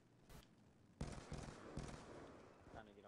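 A rifle fires a short burst of shots.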